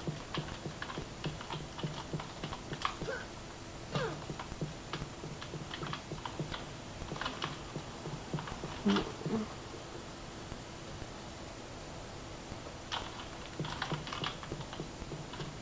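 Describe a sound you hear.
Keyboard keys click and tap rapidly.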